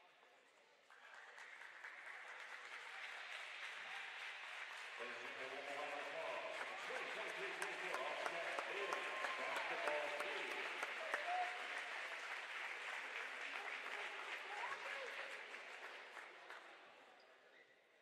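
A crowd claps and applauds in a large echoing hall.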